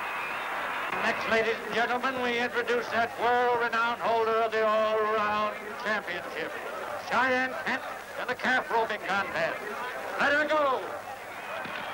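A man announces loudly through a loudspeaker.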